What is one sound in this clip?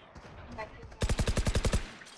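A rifle fires a rapid burst at close range.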